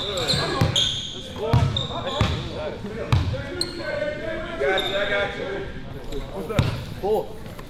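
A basketball bounces with loud thuds on a hardwood floor in an echoing gym.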